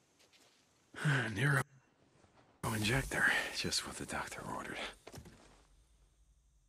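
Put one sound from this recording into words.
A man speaks calmly in a low voice.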